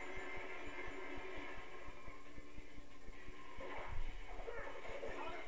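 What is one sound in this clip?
Quick running footsteps patter from a video game through a television speaker.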